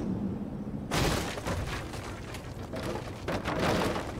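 A motorcycle crashes with a loud scrape and clatter.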